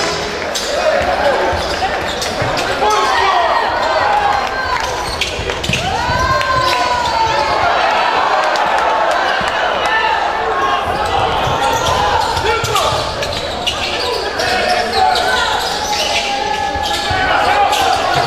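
Spectators murmur and call out in the stands.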